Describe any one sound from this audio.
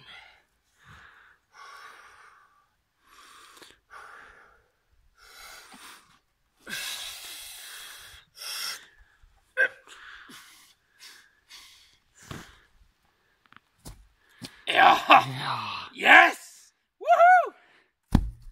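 A young man grunts and groans with effort, close by.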